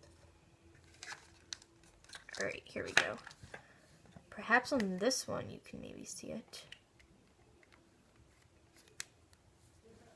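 A small plastic case clicks and rattles in a young woman's hands.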